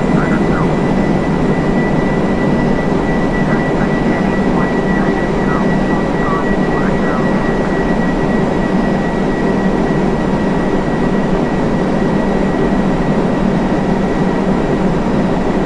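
Jet engines drone steadily.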